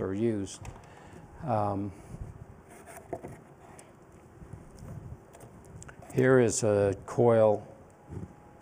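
An elderly man speaks slowly in a large echoing room.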